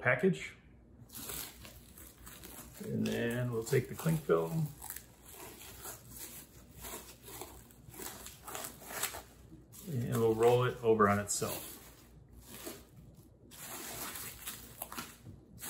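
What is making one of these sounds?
Plastic wrap crinkles and rustles as it is handled.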